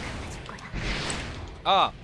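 Metal blades clash with a sharp impact.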